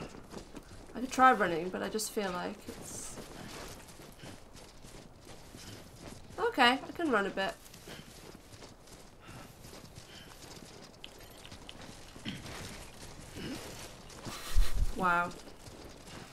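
A woman speaks with animation close to a microphone, in short bursts.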